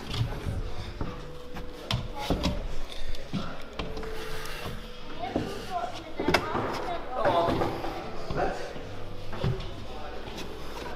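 Hands and climbing shoes knock and scuff against holds on a wall.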